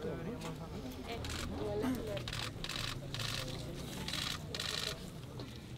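A crowd of people talks and calls out nearby, outdoors.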